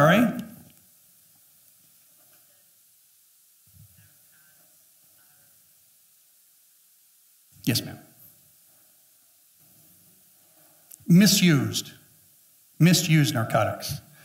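A middle-aged man speaks through a headset microphone to a room, with pauses between bursts of speech.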